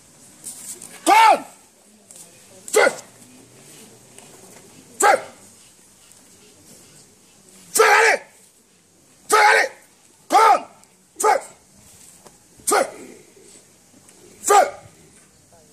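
A man shouts loudly in short, forceful bursts.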